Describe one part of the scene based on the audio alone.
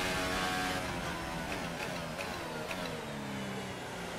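A racing car engine winds down as the car slows.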